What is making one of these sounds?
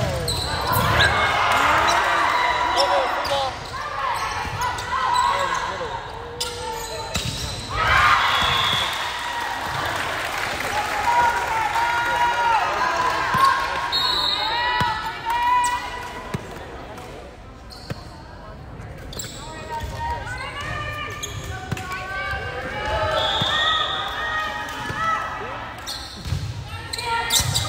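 Volleyball players shout and call out to each other in a large echoing gym.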